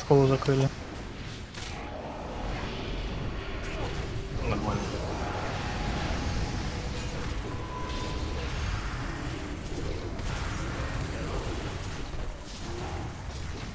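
Magic spells crackle and whoosh in a busy battle.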